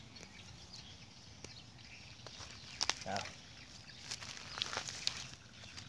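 Dry grass and leaves rustle and crackle under hands and feet.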